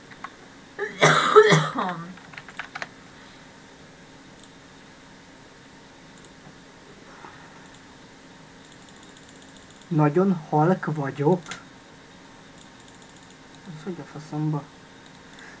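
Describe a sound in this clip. A young man speaks briefly through a headset microphone, heard as if over an online call.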